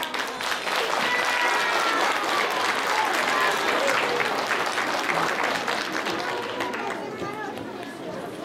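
Upbeat music plays loudly through loudspeakers in a large hall.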